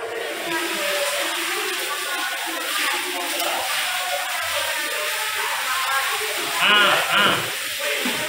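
A broom sweeps across a wet floor.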